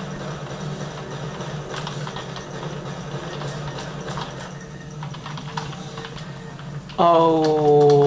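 Video game sound effects play through small speakers.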